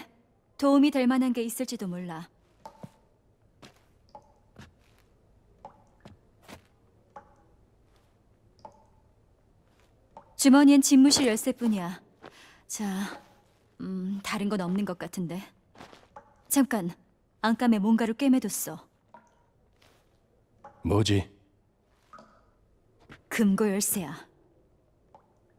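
A young woman speaks calmly and quietly, close by.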